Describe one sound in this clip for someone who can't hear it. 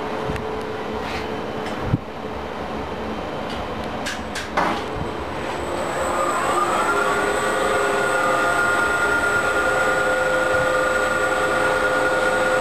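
An electric motor hums steadily.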